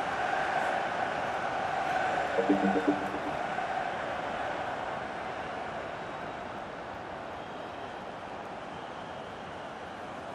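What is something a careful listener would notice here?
A large stadium crowd roars and cheers steadily, fading a little over time.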